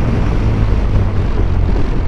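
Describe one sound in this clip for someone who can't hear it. A car passes by.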